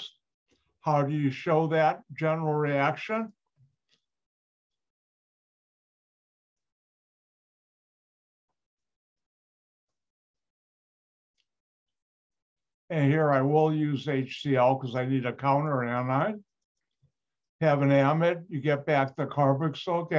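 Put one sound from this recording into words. An older man lectures calmly over an online call.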